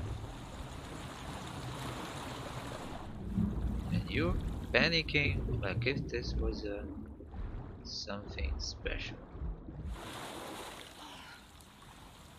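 Water splashes and sloshes as a swimmer moves through it.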